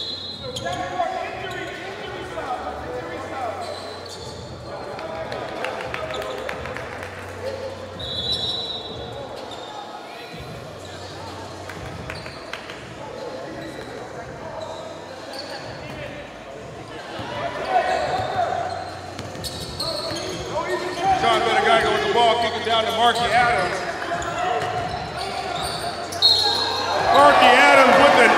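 A crowd murmurs and chatters in a large echoing gym.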